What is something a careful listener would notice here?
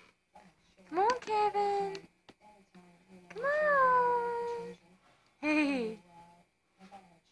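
A baby squeals and babbles.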